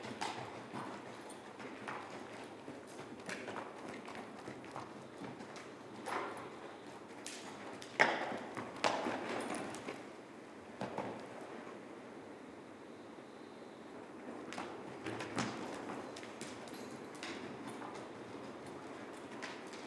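Horse hooves thud softly on sand at a canter.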